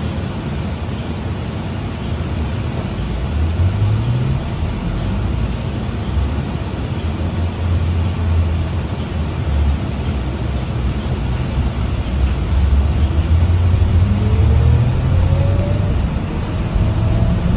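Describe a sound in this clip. A bus rattles and hums as it rolls along the road.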